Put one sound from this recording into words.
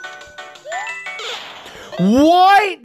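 Electronic video game music plays briefly.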